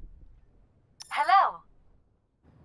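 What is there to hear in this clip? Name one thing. A short musical flourish sounds for a victory.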